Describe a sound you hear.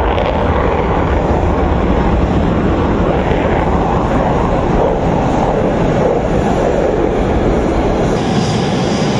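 A fighter jet roars loudly as it takes off.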